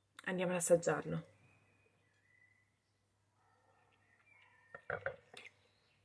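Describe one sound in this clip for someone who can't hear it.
A young woman sips and swallows wine.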